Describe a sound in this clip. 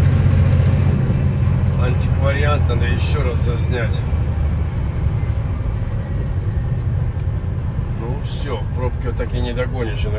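A vehicle's tyres and engine rumble steadily on a highway, heard from inside.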